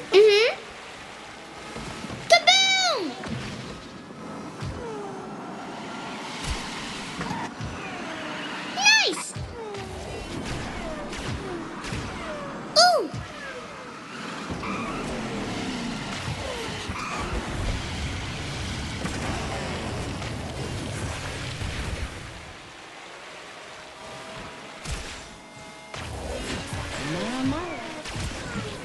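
A racing kart engine hums steadily at high speed.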